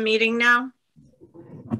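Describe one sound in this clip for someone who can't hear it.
A woman speaks over an online call.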